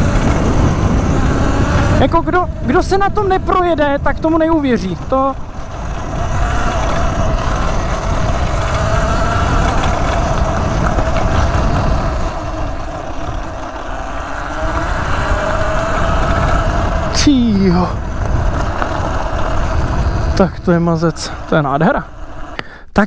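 An electric motor hums with a steady whine.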